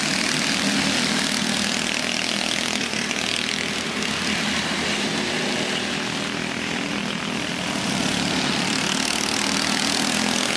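Go-kart engines buzz and whine loudly as karts race past.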